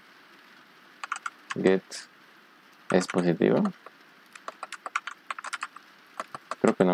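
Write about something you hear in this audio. Keys on a keyboard click in quick bursts of typing.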